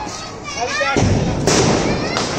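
A firecracker fizzes loudly.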